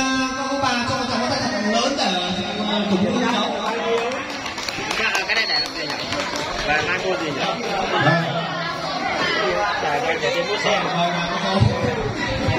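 A crowd of children chatters and calls out nearby.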